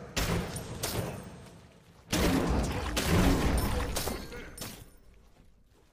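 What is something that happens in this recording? Game combat effects clash and burst.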